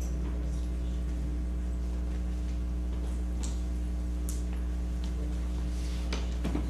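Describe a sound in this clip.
A crowd of adults murmurs and chats quietly in a large echoing hall.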